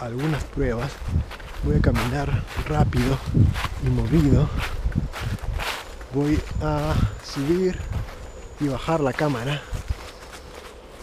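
A young man talks calmly and close by, outdoors.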